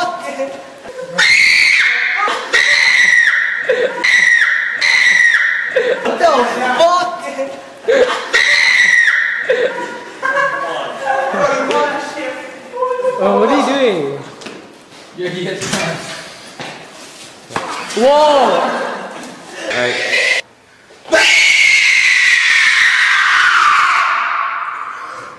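A young man laughs loudly and shrieks nearby.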